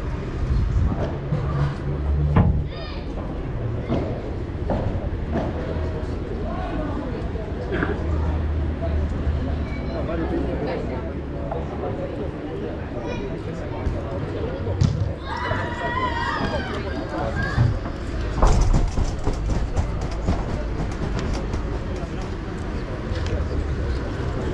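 A ball bounces off the court and the walls.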